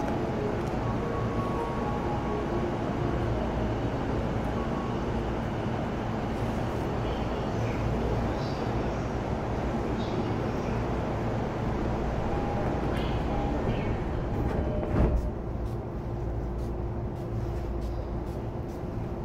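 An electric train rumbles and hums steadily along the tracks.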